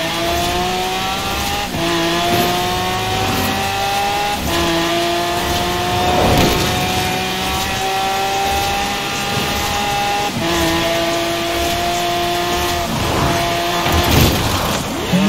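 A high-revving sports car engine accelerates, its pitch climbing and dropping with each gear change.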